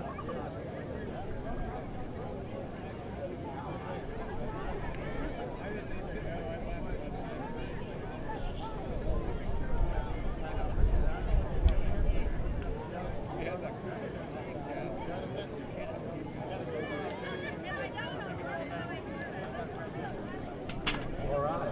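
A crowd of children and adults chatters and cheers outdoors.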